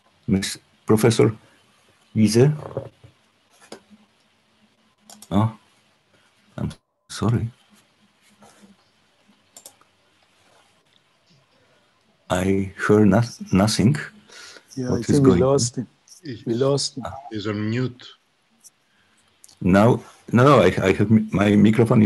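An elderly man speaks calmly over an online call, with pauses.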